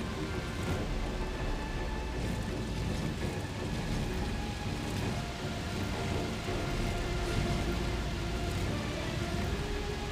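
A heavy stone block scrapes and grinds across a stone floor.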